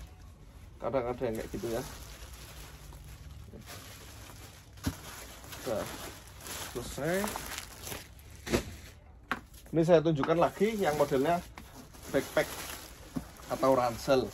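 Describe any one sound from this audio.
Plastic wrapping rustles as clothes are handled.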